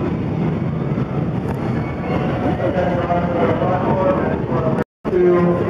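A roller coaster train rumbles and clatters on its track.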